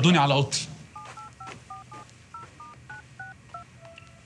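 A phone beeps with short electronic tones as keys are pressed.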